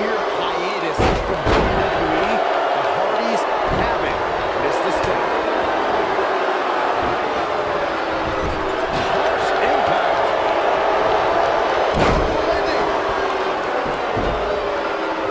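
Heavy thuds of bodies hitting the ring mat ring out now and then.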